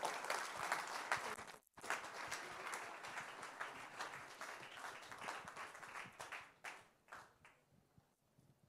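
An audience claps and cheers in a large room, then the applause fades.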